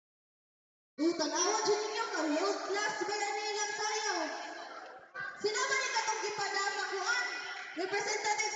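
A group of children sing loudly together.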